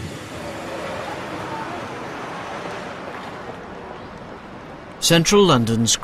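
Traffic hums along a city street.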